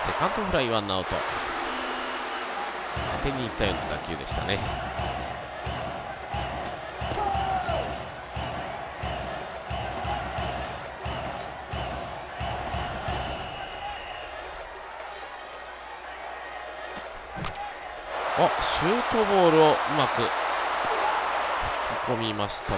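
A large stadium crowd cheers and chants.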